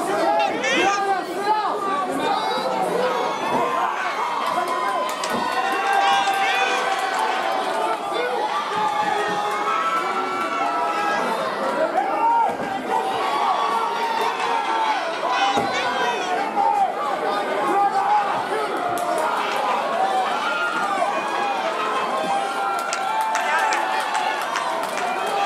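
A crowd of spectators shouts and cheers loudly.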